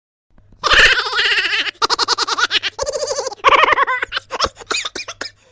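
A woman laughs loudly and heartily, close up.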